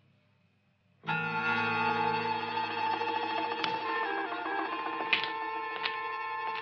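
A pocket watch chimes a tinkling melody.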